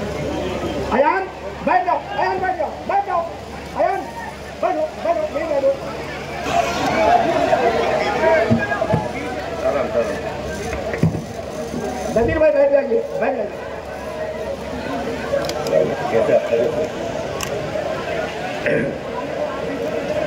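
A man speaks loudly nearby, addressing the crowd.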